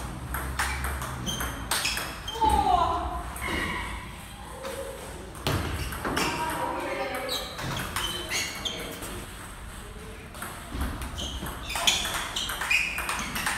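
A table tennis ball clicks back and forth between paddles and the table in a quick rally.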